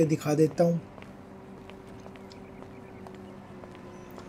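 Footsteps tap on a paved path at a steady walking pace.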